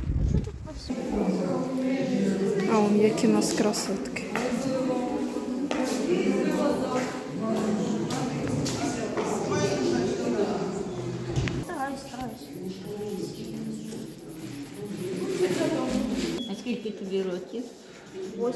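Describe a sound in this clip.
Several adults chatter in an echoing indoor hall.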